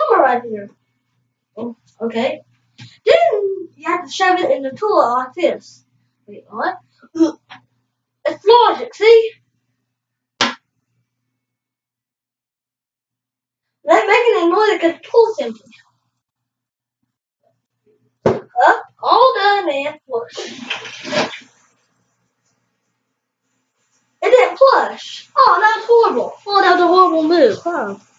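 A boy talks with animation close by.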